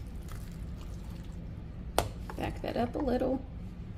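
A spoon stirs a thick, wet mixture in a bowl.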